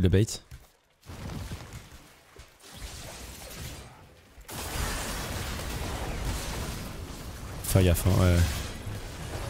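Fighting effects whoosh and crackle in a video game.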